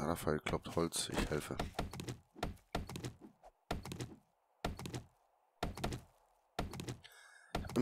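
An axe chops into a tree trunk with repeated knocks.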